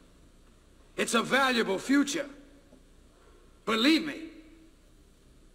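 A middle-aged man speaks close by in short, forceful bursts.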